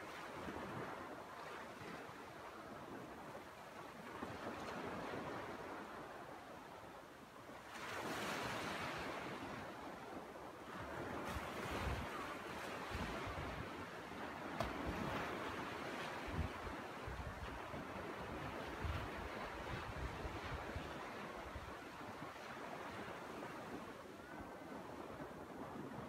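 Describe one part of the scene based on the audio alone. Small waves wash softly onto the shore.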